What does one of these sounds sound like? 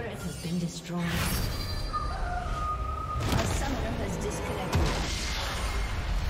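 Magic blasts and explosions crackle in a fierce video game battle.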